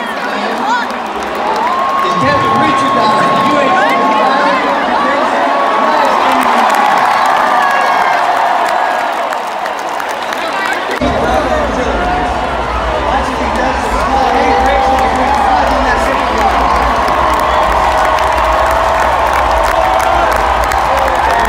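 A huge stadium crowd cheers and roars loudly all around, in a wide open echoing space.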